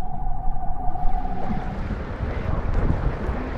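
Water sloshes and splashes at the surface.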